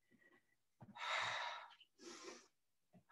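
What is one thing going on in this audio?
A woman breathes out audibly.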